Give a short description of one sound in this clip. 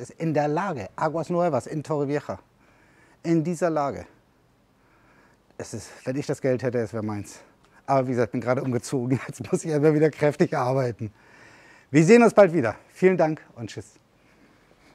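An elderly man talks calmly and clearly into a clip-on microphone.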